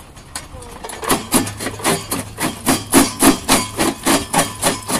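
A stone-crushing machine pounds rocks in a fast, steady rhythm.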